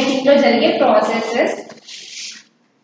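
A young woman speaks clearly.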